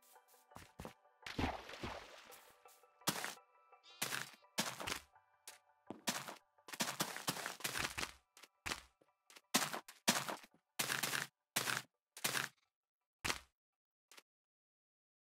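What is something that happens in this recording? Sand and grass blocks are placed and broken in a video game with short crunching thuds.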